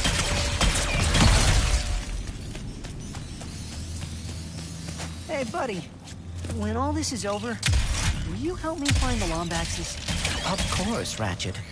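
Laser blasts fire with sharp zaps.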